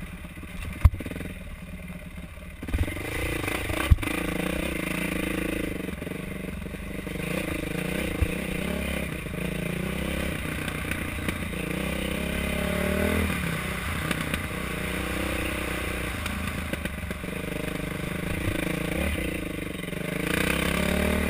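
A dirt bike engine revs and roars up and down close by.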